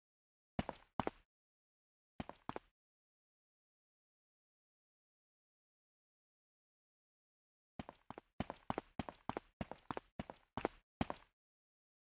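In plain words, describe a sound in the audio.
Footsteps echo on a hard floor.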